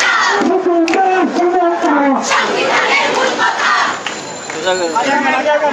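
A large crowd of young men and women chants loudly in unison outdoors.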